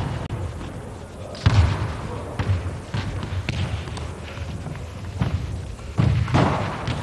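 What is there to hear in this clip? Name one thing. Footsteps squeak and thud on a hard floor in a large echoing hall.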